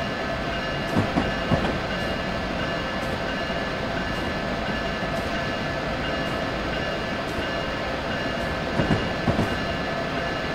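Train wheels clatter over rail joints in quick pairs.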